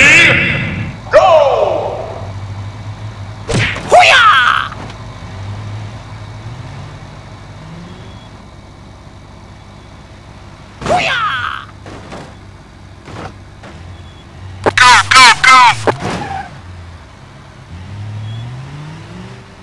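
A car engine hums and revs.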